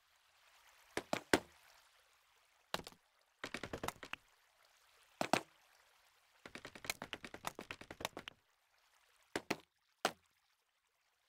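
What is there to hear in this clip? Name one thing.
Blocks are placed with short thuds.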